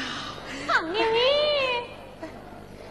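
A man sings a drawn-out, wavering operatic call.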